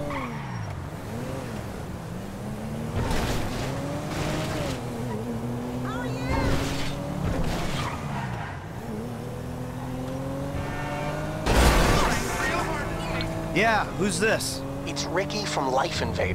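A car engine hums and revs as the car drives along a road.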